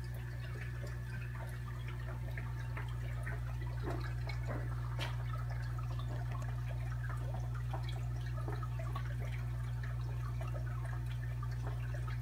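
An aquarium pump hums steadily and low.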